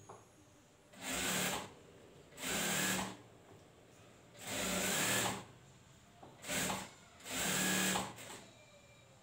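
A sewing machine runs in short fast bursts.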